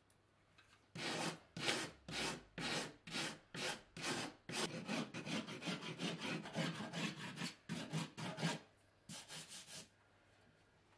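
A surform rasp shaves a plasterboard edge in back-and-forth strokes.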